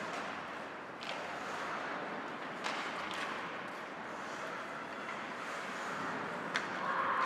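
Hockey sticks and a puck knock and clack sharply now and then.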